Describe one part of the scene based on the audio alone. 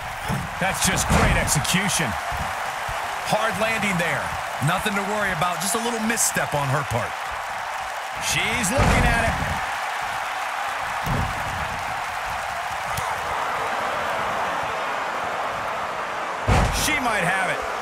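A body slams hard onto a wrestling ring mat with a heavy thud.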